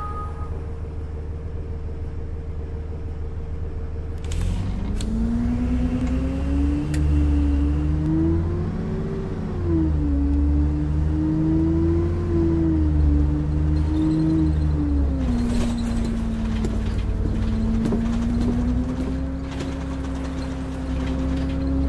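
A bus engine idles, then revs and hums steadily as the bus drives along.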